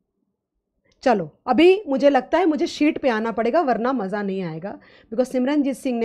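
A woman speaks clearly and with animation into a microphone.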